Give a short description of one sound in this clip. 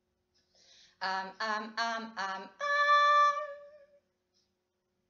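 A young woman sings a short vocal phrase up close, ending on a long held note that fades.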